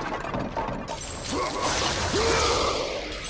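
Metal blades clash and clang sharply.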